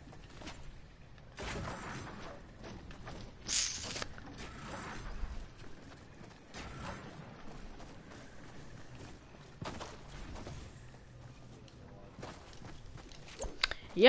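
A pickaxe thuds and clangs against walls.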